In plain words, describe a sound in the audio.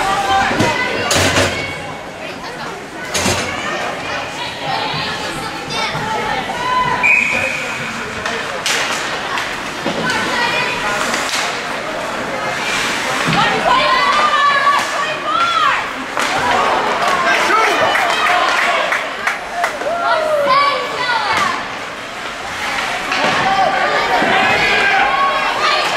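Young players shout and call out across the rink.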